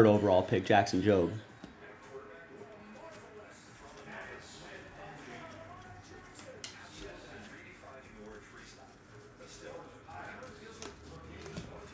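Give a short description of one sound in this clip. Trading cards shuffle and rustle in hands.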